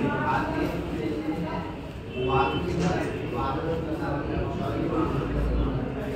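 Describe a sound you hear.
A crowd of men talk and murmur nearby.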